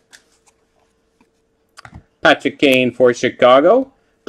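Trading cards slide against each other.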